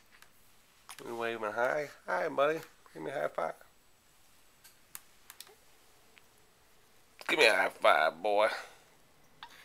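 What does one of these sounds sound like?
A baby grunts and whimpers softly close by.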